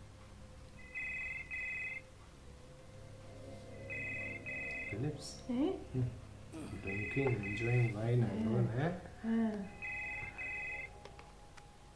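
A phone rings in repeated double bursts.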